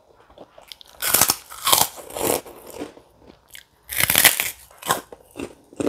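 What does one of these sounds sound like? A woman crunches crispy crackers close to the microphone.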